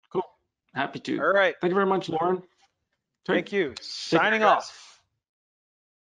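A man speaks clearly and calmly into a microphone.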